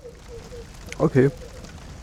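A fire crackles in a brazier.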